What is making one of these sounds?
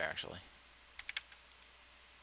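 Poker chips click briefly.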